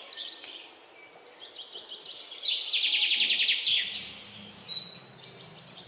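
A paintbrush swishes softly on paper.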